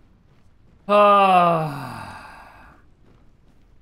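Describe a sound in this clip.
A young man lets out a short, falling exclamation close to a microphone.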